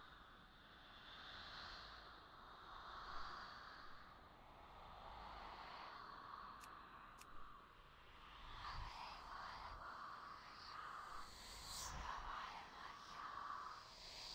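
Magical spell effects shimmer and hum from a game.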